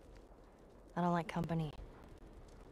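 A young woman speaks briefly, close by.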